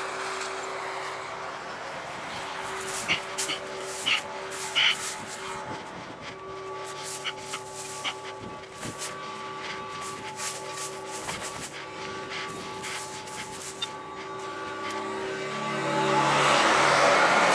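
A tractor engine drones steadily nearby.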